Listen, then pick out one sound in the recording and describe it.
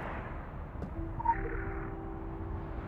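A short chime rings as an item is picked up.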